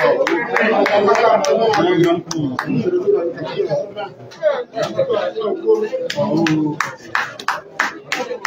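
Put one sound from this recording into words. Several men argue loudly and shout over one another in a crowded room.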